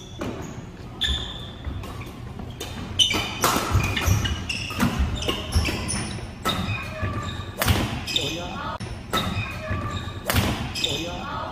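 Rackets smack a shuttlecock back and forth in a rally, echoing in a large hall.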